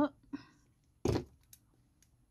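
A small metal keyring clicks against a compact mirror.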